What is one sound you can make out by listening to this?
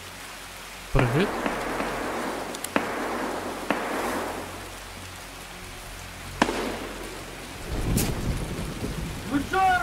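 Footsteps rustle through grass and bushes.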